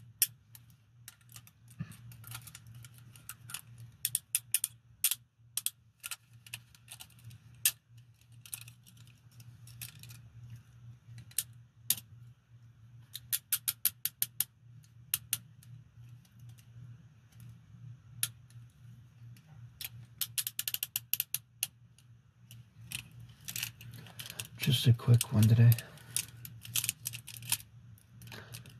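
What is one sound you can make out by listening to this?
Metal handcuffs click and ratchet close by.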